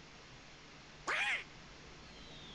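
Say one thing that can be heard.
A cartoon duck squawks excitedly.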